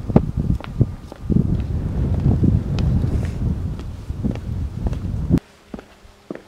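Wind blows against a microphone outdoors.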